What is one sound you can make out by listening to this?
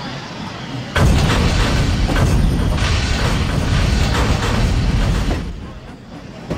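A steam locomotive chugs loudly close by.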